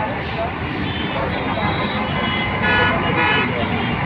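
A truck engine rumbles nearby.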